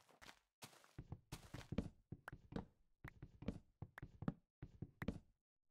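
An axe chops at wood with repeated dull knocks.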